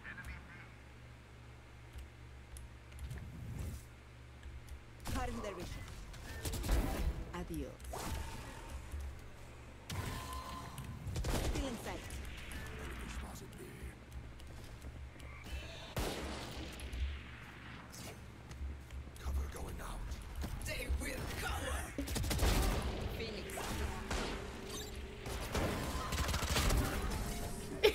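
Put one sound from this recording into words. Keys click rapidly on a keyboard.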